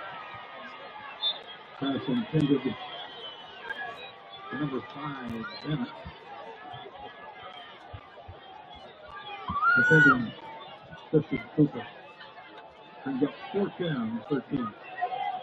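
A crowd murmurs and cheers outdoors at a distance.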